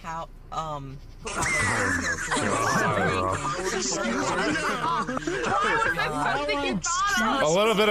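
A teenage boy talks excitedly and laughs close to a phone microphone.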